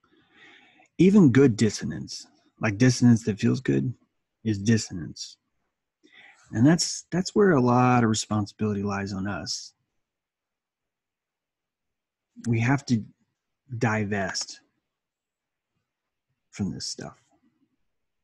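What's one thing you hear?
A middle-aged man speaks calmly and close to a microphone, in pauses, as if on an online call.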